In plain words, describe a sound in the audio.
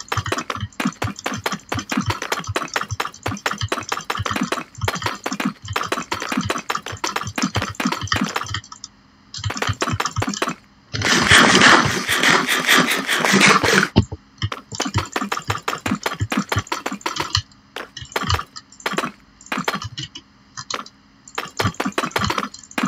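Stone blocks are set down with quick, repeated knocks.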